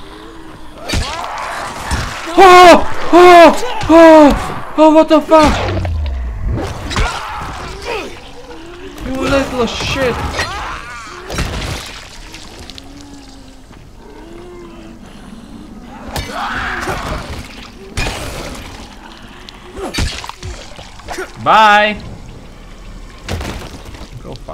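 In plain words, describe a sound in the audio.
Heavy blows thud and squelch against bodies.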